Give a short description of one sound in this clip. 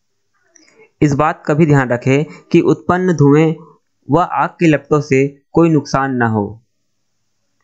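A teenage boy speaks clearly and calmly, close by.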